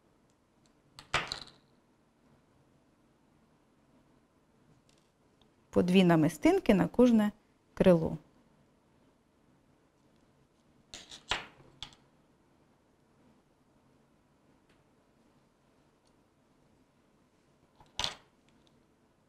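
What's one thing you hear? Small objects tap down on a tabletop a few times.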